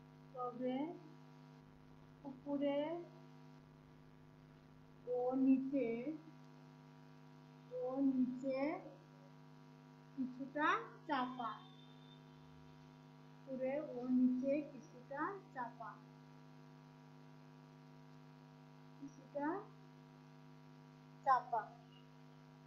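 A woman speaks slowly in short phrases, close by.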